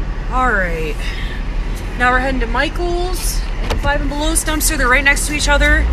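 A car drives off.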